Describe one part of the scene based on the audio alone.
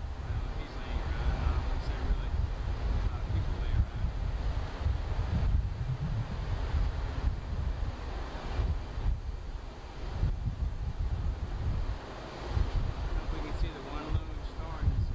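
Wind gusts and rumbles strongly against the microphone outdoors.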